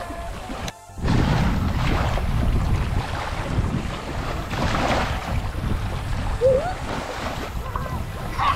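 Wind rumbles loudly outdoors.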